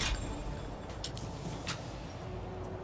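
A rifle bolt clicks and clacks as the rifle is reloaded.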